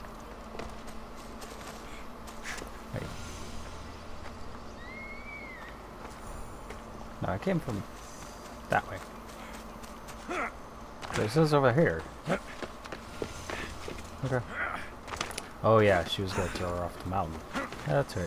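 Footsteps run quickly over grass and stone.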